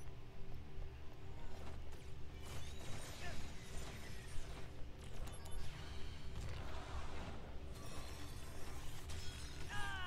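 Sword slashes swish and clang.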